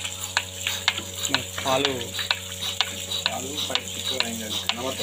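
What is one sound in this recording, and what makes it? A milking machine clicks in a steady, quick rhythm.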